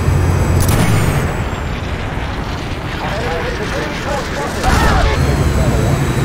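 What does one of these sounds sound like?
An aircraft engine roars steadily.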